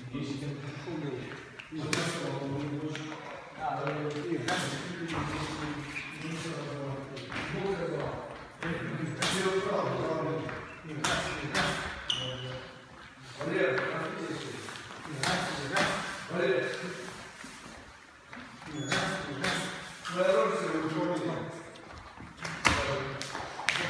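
A middle-aged man speaks calmly and instructively nearby, in a room with some echo.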